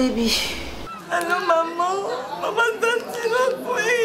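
A young woman wails and sobs loudly close by.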